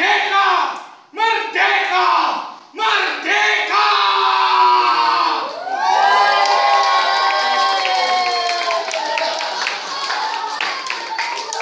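A group of adults sings and chants together with animation, close by in an echoing room.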